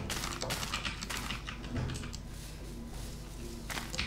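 Soft crunching taps sound as bamboo stalks are broken.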